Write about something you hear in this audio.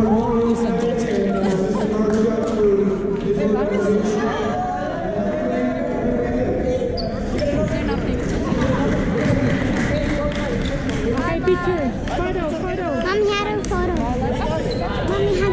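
Young players in a huddle chant and cheer together loudly in an echoing gym.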